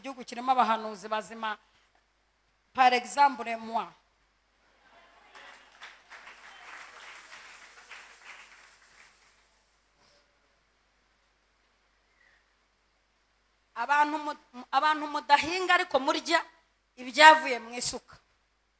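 A woman speaks emotionally into a microphone, her voice breaking with tears.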